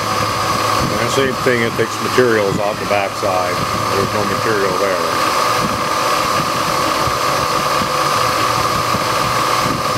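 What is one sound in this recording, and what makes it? A milling machine whirs steadily as its cutter grinds through metal.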